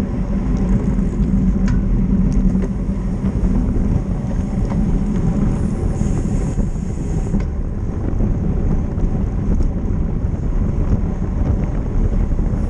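Wind rushes loudly past a bicycle rider outdoors.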